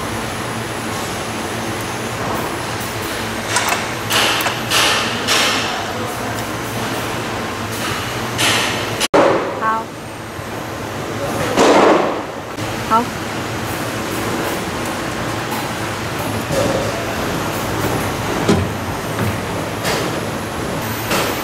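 Metal parts of a machine knock and clank as they are moved by hand.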